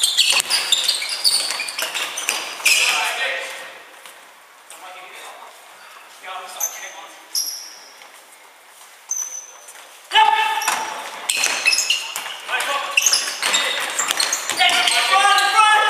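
A ball thuds as it is kicked and bounces.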